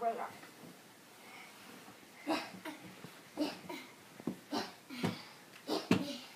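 Children scuffle and thump on a carpeted floor.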